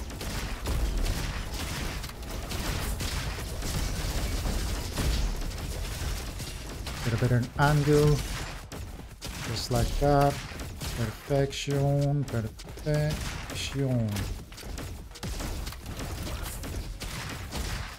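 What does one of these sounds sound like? Guns fire in loud, rapid bursts with sharp impacts.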